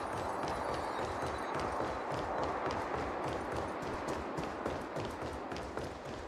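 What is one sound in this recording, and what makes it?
Quick footsteps patter across a hard floor and up stone steps.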